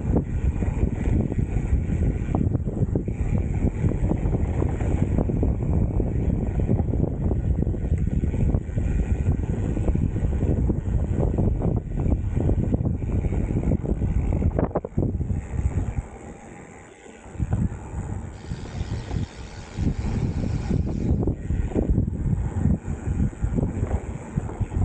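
Mountain bike tyres rumble and crunch over a dirt trail.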